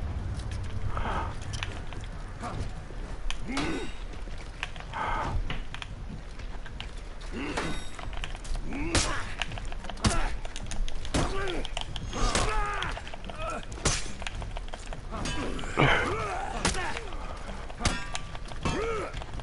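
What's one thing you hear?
Heavy weapons swing and clash in a fight.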